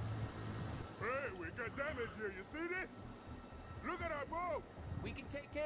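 A man calls out loudly outdoors.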